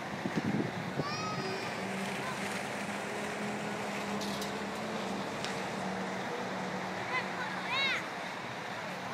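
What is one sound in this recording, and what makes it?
Riders shriek from high above, far off.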